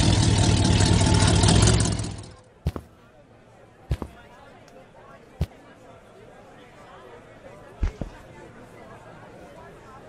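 A truck door thuds shut.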